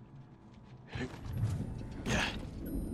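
A heavy body crashes down onto the ground.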